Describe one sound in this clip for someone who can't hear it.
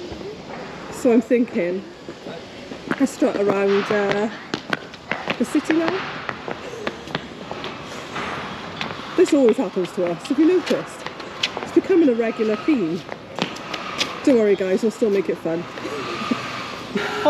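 A woman talks cheerfully and close by.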